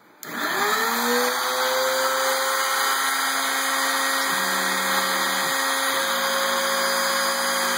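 A router motor spins up and whines at high speed.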